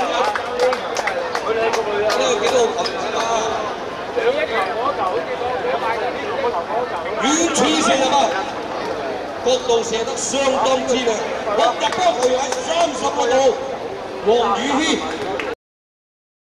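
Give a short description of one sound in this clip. Young men talk and call out to each other outdoors during a football match.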